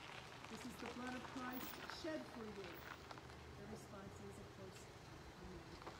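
An elderly woman speaks calmly outdoors.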